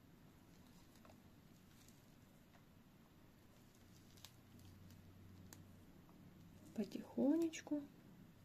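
Fingers rustle and pick at dry moss.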